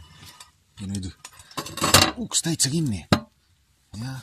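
A metal stove door creaks and clanks shut.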